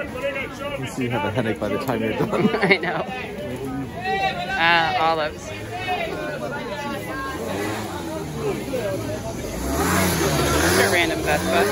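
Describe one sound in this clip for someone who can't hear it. A busy outdoor crowd of men and women murmurs and chatters all around.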